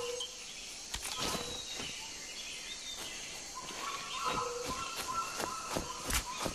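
Footsteps rustle through leaves and grass.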